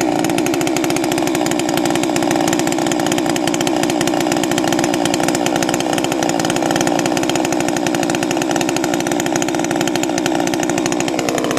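A chainsaw engine idles loudly and steadily close by.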